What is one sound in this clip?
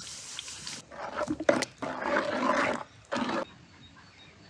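A ladle stirs thick liquid with a wet sloshing.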